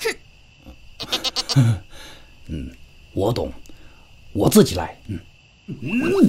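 A man speaks in a gruff, animated voice.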